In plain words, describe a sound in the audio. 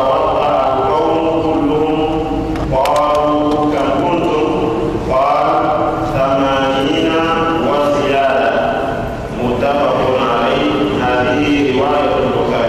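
A man chants in a steady, melodic voice through a microphone.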